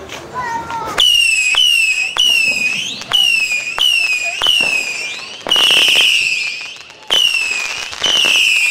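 A firework fountain shoots up sparks with loud repeated whistles.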